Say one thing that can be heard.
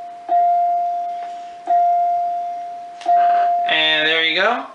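An electronic chime rings out three times, each ring slowly fading.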